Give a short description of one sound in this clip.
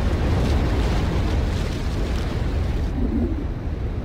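Surf churns and splashes against rocks.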